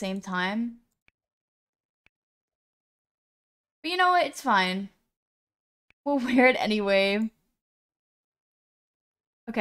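A young woman speaks with animation into a close microphone, in short bursts.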